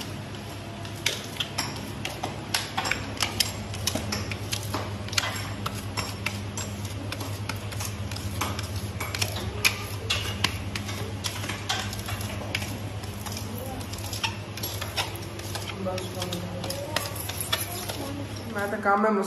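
A tool scrapes and taps against floor tiles.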